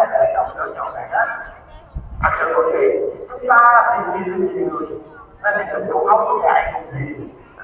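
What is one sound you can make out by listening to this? A large crowd chants together in unison outdoors.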